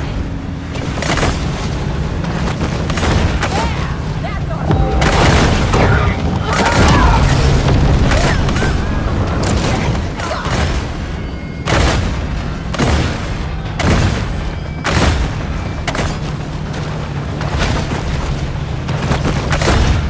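Water splashes and churns loudly as a large fish thrashes through waves.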